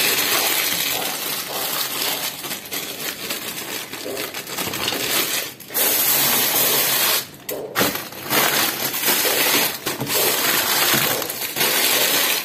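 A plastic wrapper crinkles close by.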